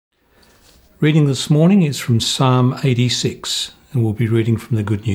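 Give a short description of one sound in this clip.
A middle-aged man reads aloud calmly, close to a microphone.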